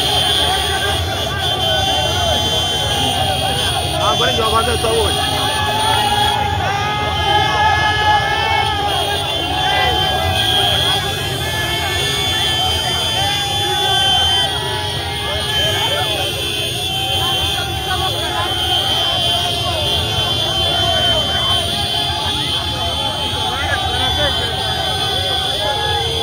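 A large crowd shouts and chants outdoors.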